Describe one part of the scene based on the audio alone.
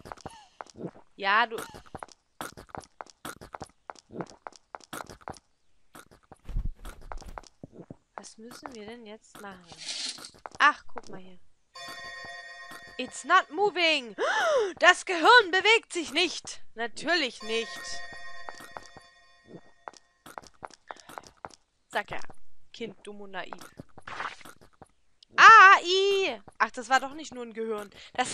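A woman talks with animation into a microphone, close by.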